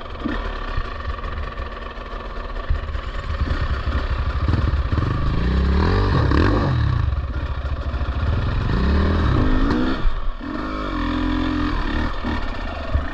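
A dirt bike engine revs and sputters up close, its pitch rising and falling.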